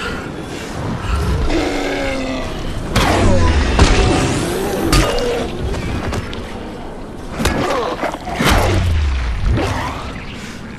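A zombie growls and groans close by.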